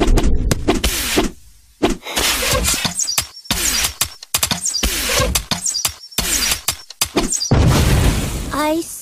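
Game fight sounds with blows and spell effects clash rapidly.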